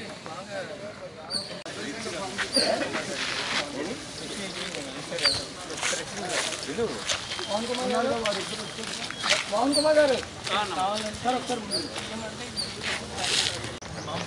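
Several men talk over one another outdoors.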